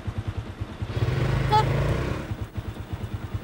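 A scooter engine revs briefly as it pulls away.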